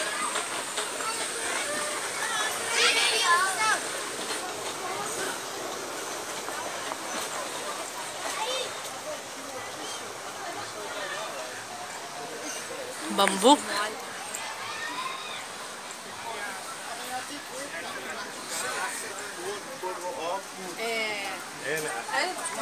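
Children chatter and call out nearby, outdoors.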